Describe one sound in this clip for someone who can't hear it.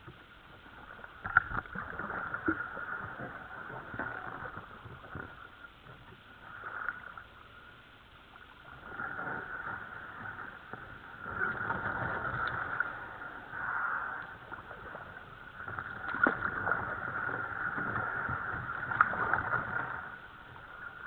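Reeds brush and scrape along a kayak's plastic hull.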